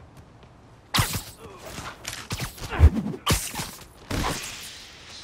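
Heavy thumps and blows land in quick succession.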